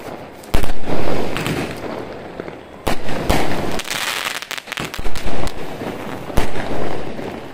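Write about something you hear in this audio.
Fireworks burst with loud booms that echo away.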